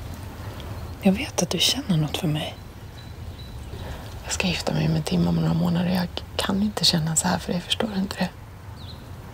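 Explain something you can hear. A young woman speaks softly and earnestly up close.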